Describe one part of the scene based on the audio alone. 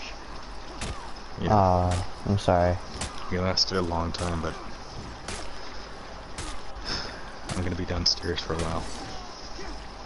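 Metal swords clash and clang in quick blows.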